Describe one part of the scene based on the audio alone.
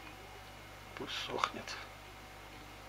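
Small metal pliers click and rustle as they are handled.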